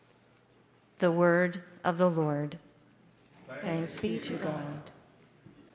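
A middle-aged woman speaks calmly into a microphone in a large, echoing room.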